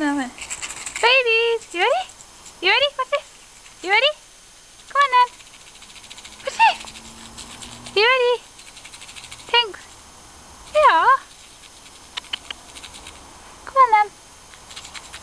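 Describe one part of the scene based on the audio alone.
A cat meows repeatedly nearby.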